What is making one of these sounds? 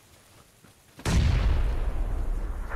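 A rifle fires in a video game.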